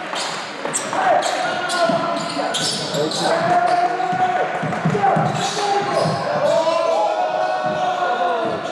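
Sneakers squeak sharply on a hard court in an echoing hall.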